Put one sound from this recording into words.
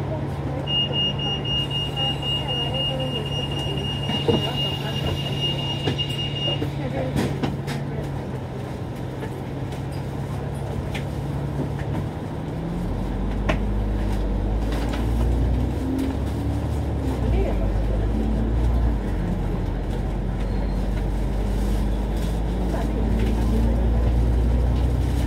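Cars drive past on the road.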